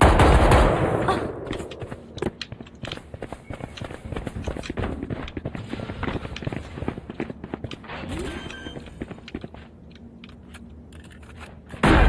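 Footsteps tap quickly on hard ground.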